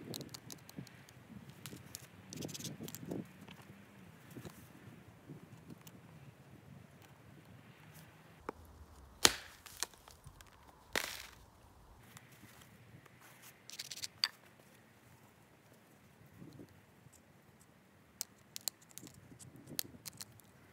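A blade scrapes and clicks against a stone.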